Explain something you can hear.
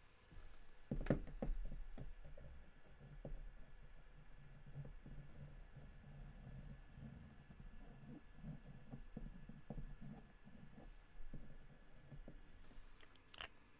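A felt marker squeaks and scratches across paper.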